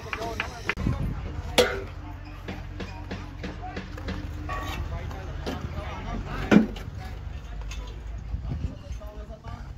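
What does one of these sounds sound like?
A trowel scrapes and taps on wet mortar.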